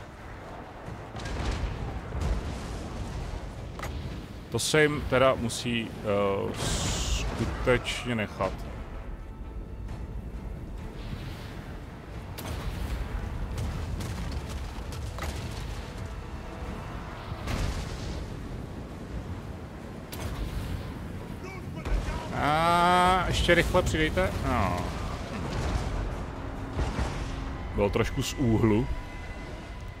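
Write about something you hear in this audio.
A battle rumbles with distant clashing.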